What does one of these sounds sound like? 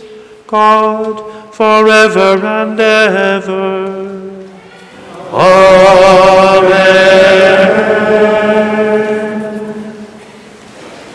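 A man chants slowly and tunefully through a microphone in a large echoing hall.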